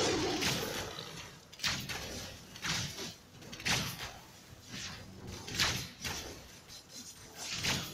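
Sword strikes clash repeatedly.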